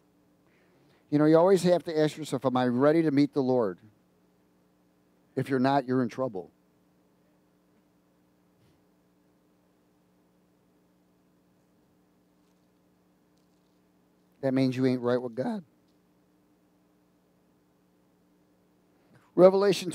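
A middle-aged man speaks with animation through a headset microphone, in short bursts with pauses.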